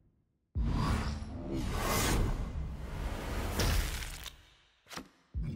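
A deep booming whoosh swells and then fades away.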